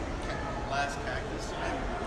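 A man talks in a large echoing hall.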